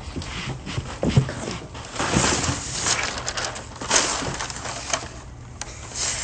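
Cardboard and paper rustle and scrape.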